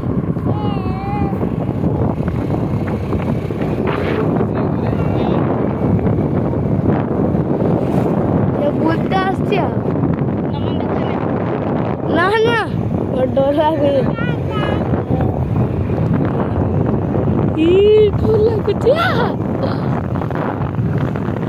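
Wind roars over a moving scooter, outdoors.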